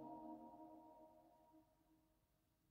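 A small mixed choir holds a final sung chord that fades away in a large echoing church.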